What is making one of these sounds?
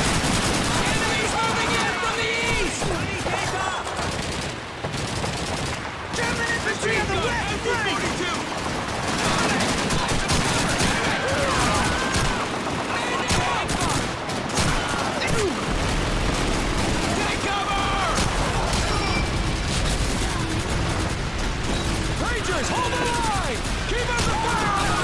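Rifles fire in rapid, sharp bursts nearby.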